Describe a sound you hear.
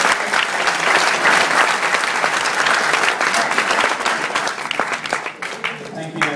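A crowd cheers and applauds loudly in a large room.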